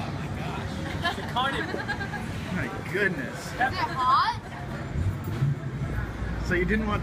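Young girls talk and laugh with excitement close by.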